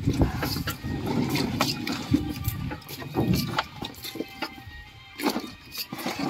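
Bunches of bananas thump as they are packed into a plastic crate.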